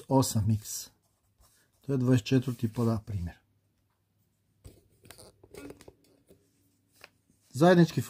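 A marker scratches and squeaks on paper.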